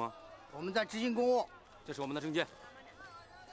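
A middle-aged man speaks firmly and loudly nearby.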